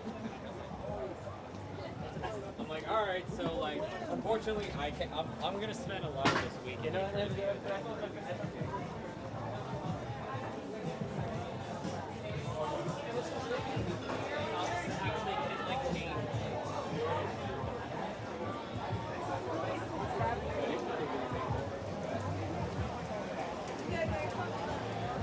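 Many people talk and chatter nearby outdoors.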